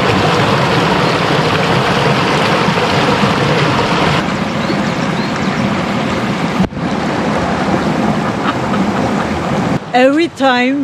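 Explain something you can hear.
A stream rushes loudly over rocks.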